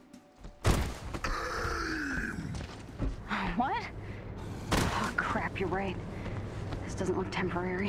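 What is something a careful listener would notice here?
Heavy footsteps thud on soft ground.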